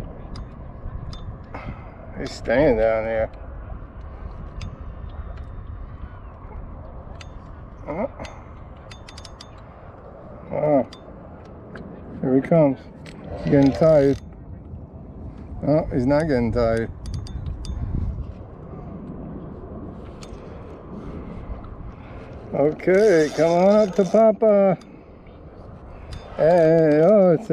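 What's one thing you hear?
A fishing reel clicks and whirs as it is wound.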